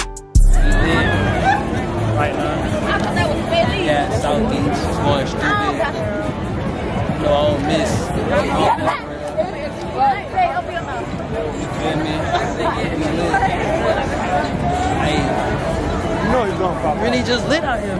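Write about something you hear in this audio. A crowd murmurs outdoors in the background.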